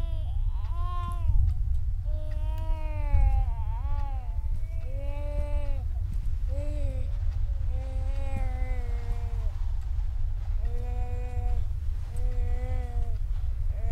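A woman talks in a drawn-out, sing-song voice close to a microphone.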